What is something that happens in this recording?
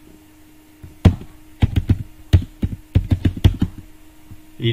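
Keys clatter on a keyboard in quick taps.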